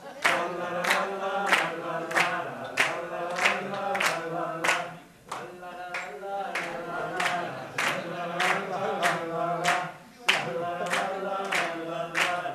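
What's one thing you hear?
A barrel organ plays a lively, tinkling tune with a steady beat.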